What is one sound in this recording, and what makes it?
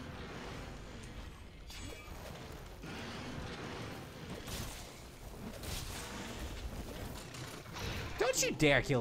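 Heavy blows thud and crash through snow.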